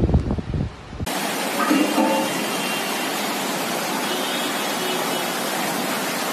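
Heavy rain pours down outside.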